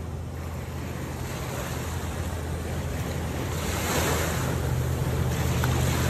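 Water splashes and hisses in a boat's wake.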